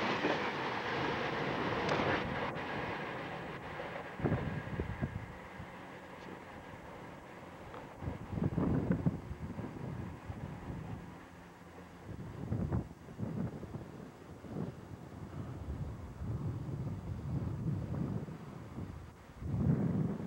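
A passenger train rumbles along the tracks nearby and fades into the distance.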